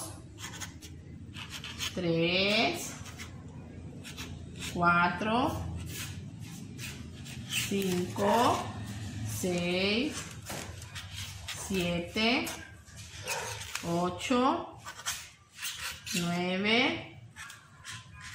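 A marker squeaks and taps on a paper plate.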